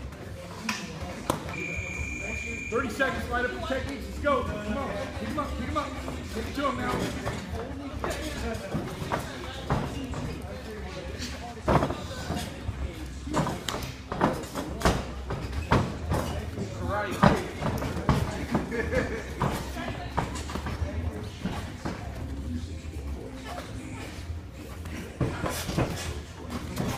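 Feet shuffle and thud on a padded floor.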